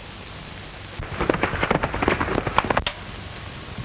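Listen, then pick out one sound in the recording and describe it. Horses gallop past on a dirt road.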